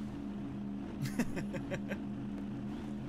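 A man laughs briefly into a microphone.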